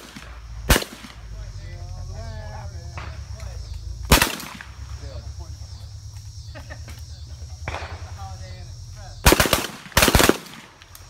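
Shotguns fire loud, sharp blasts that echo across open ground.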